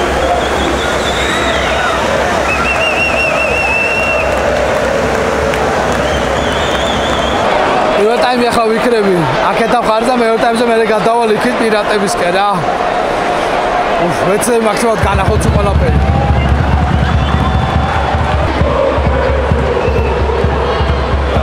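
A large crowd chants and roars in a stadium.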